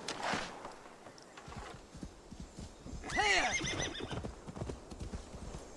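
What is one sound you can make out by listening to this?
A horse's hooves thud through snow.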